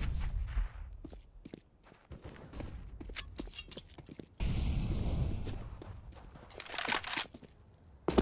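Footsteps tap quickly on hard stone ground.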